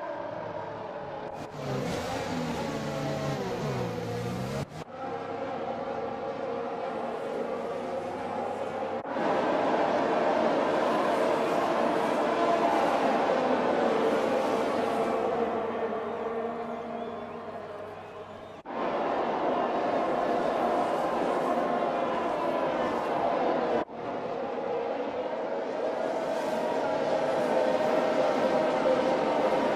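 Racing car engines whine loudly at high revs, rising and falling in pitch as the cars pass by.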